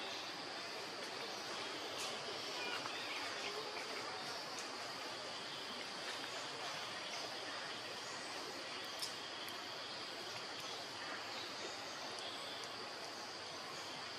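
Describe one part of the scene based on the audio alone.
A baby monkey suckles with soft, wet smacking sounds.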